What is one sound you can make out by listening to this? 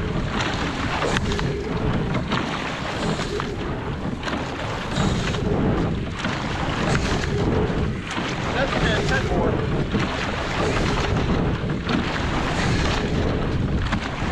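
Wind rumbles past outdoors.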